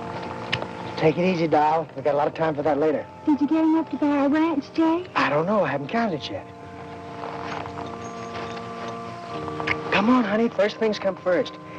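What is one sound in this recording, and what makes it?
A young man speaks softly and tenderly close by.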